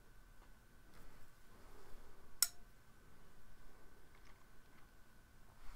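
A sleeve rustles softly close by.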